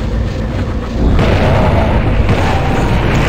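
A dynamite blast booms loudly.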